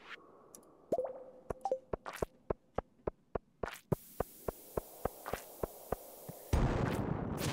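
Footsteps tap quickly and steadily on a stone floor.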